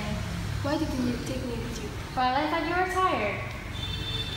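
A second young woman speaks back calmly, close by.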